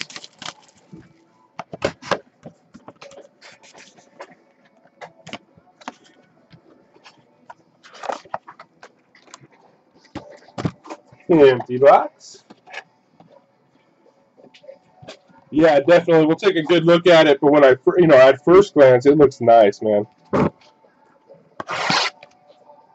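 Cardboard boxes rustle and knock as hands handle them.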